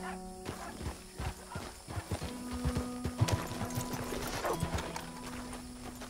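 A horse's hooves clop on a dirt path.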